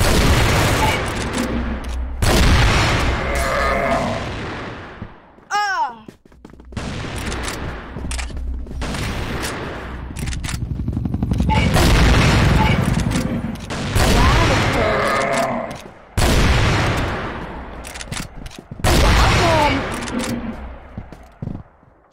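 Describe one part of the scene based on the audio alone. Heavy rifle shots boom and echo with long rumbling tails.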